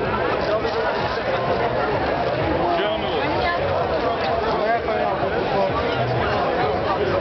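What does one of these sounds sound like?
A large crowd of men and women talks and cheers loudly all around, close by.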